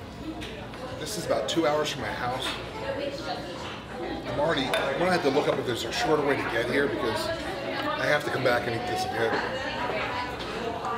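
A man in his thirties talks with animation close by.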